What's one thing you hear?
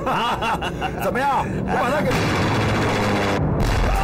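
Several men laugh loudly.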